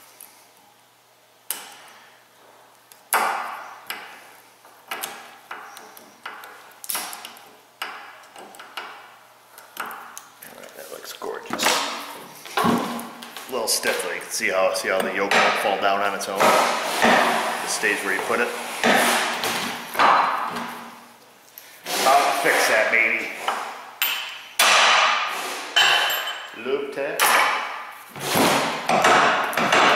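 Metal parts clink and scrape as they are handled.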